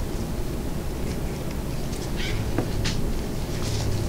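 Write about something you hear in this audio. Light plastic items tap and knock against a hard surface.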